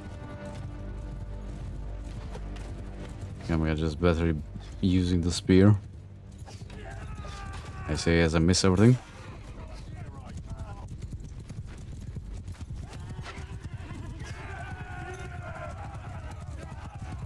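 A horse gallops, hooves pounding steadily on the ground.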